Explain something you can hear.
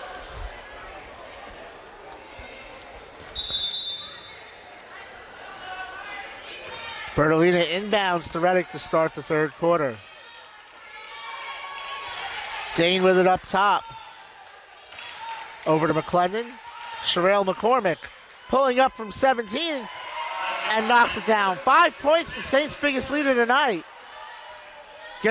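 A small crowd murmurs in a large echoing hall.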